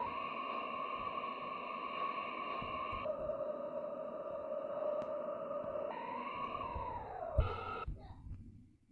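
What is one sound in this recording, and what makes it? A subway train's motor whines steadily, then winds down as the train brakes to a stop.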